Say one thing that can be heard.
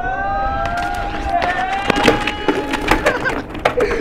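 Bike tyres roll over concrete.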